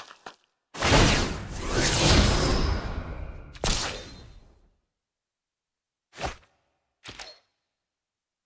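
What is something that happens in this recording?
Magical whooshing game sound effects play in short bursts.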